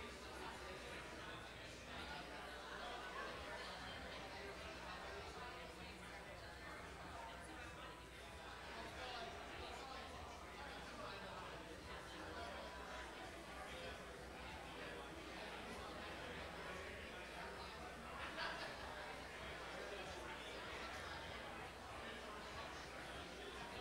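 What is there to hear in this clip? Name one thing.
A crowd of men and women chat and mingle in a large room with a slight echo.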